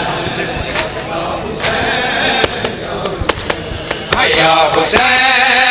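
Hands slap rhythmically on bare chests.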